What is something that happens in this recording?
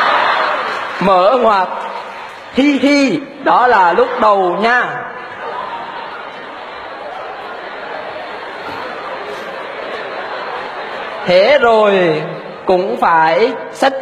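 A young man speaks calmly into a microphone, heard through loudspeakers in a large hall.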